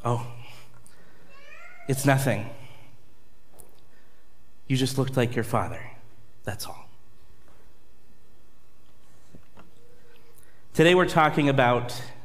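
A man speaks with pauses into a microphone in a reverberant hall.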